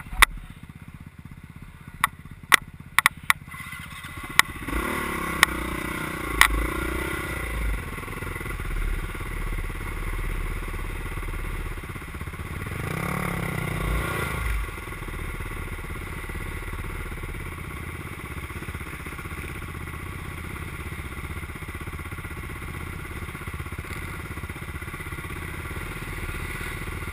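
A dirt bike engine idles and sputters up close.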